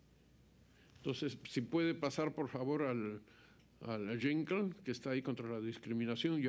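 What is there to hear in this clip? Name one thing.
An elderly man speaks calmly and firmly into a microphone.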